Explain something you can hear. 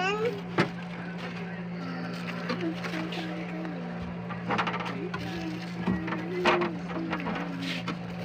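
A hand knocks against frozen bottles.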